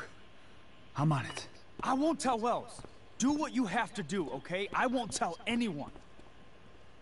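A young woman pleads loudly and urgently.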